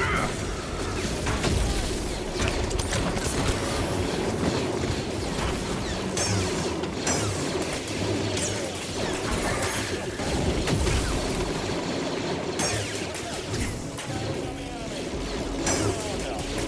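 Laser blasts fire and ricochet in quick bursts.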